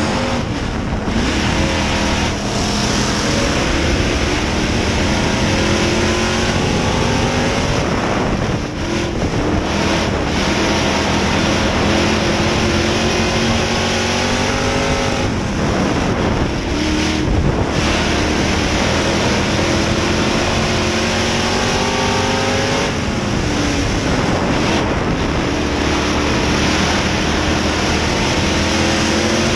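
Tyres rumble over a dirt track.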